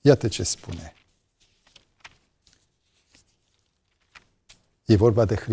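Book pages rustle as a man turns them.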